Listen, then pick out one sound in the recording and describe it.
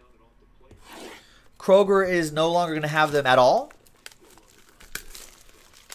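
Plastic wrapping crinkles as a pack is torn open.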